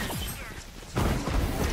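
A loud whooshing burst of a game's spell effect rushes in.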